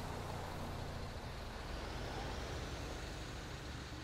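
A truck rumbles past close by.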